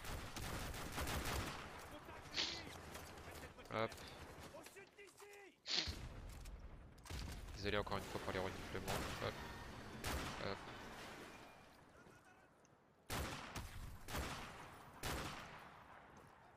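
Sniper rifle shots crack loudly with echoing booms.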